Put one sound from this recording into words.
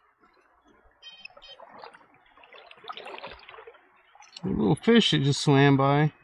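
Hands swish and splash in shallow water.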